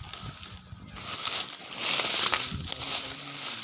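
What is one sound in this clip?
Leafy plants rustle as a gloved hand brushes through them.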